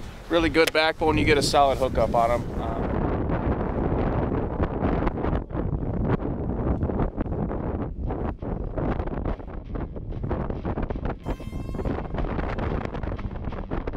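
Wind blows strongly outdoors, buffeting the microphone.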